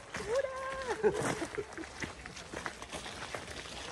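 People talk and call out at a distance outdoors.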